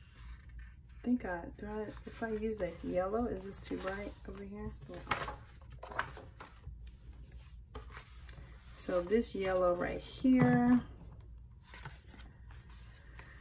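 Paper pages rustle as they are flipped.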